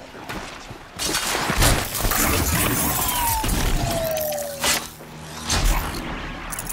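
A mechanical creature clanks and crashes heavily to the ground.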